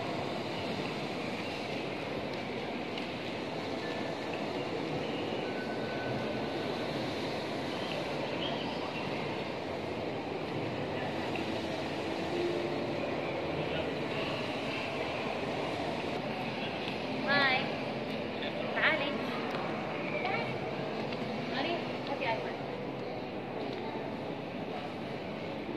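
A crowd of people murmurs softly in a large echoing hall.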